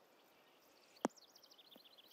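A golf ball lands on the green with a sharp thud.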